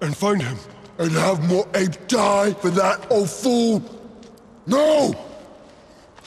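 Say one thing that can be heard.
A second young man answers angrily.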